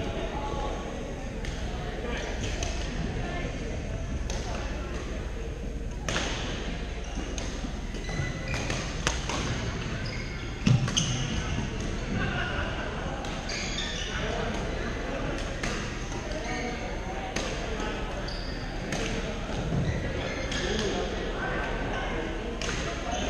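Shoes squeak on the hard floor.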